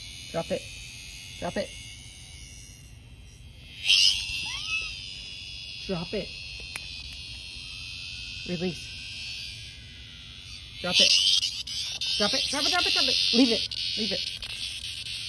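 A small dog yaps in short, sharp bursts close by.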